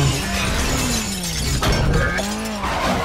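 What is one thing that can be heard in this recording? Glass shatters in a crash.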